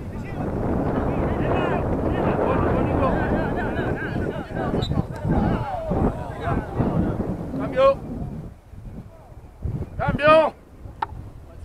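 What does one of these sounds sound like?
Young players shout and call out across an open field outdoors.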